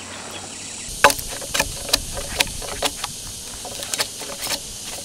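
A cleaver chops into a wooden log with sharp knocks.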